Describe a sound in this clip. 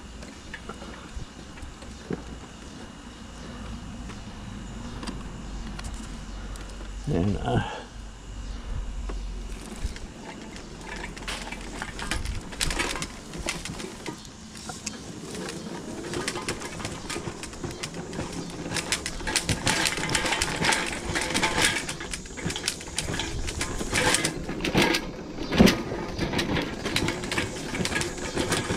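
A plastic window frame rattles and clacks as it is handled up close.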